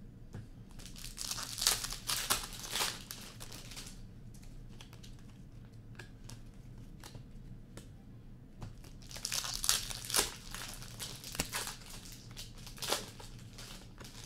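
Foil card wrappers crinkle and tear as packs are opened.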